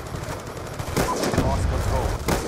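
Gunshots crack sharply nearby.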